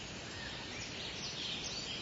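Water flows and splashes gently.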